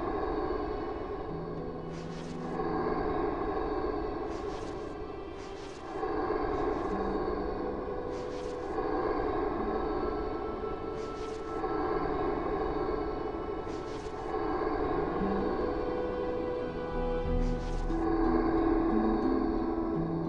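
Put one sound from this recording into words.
A magical shimmering chime rings out again and again, with bursts of hiss.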